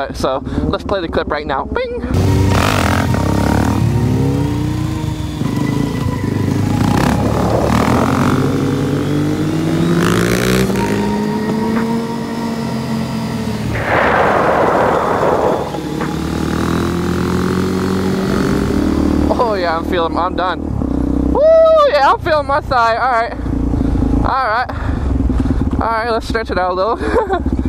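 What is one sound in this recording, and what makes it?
A motorcycle engine revs up and down loudly.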